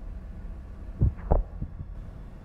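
A game character thuds onto a hard floor.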